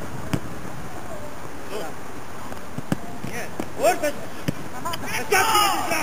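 A football thuds as a player kicks it outdoors.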